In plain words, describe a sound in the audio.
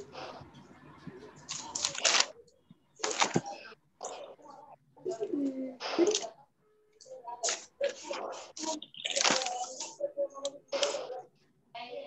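A child speaks over an online call.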